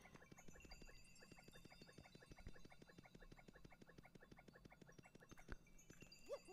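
Quick, light footsteps patter rapidly in a cartoonish way.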